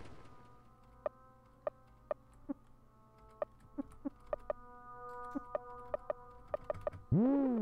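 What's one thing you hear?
Short game menu blips sound.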